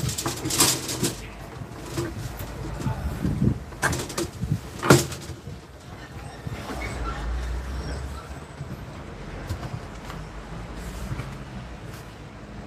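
Metal tubing rustles and clinks as it is handled.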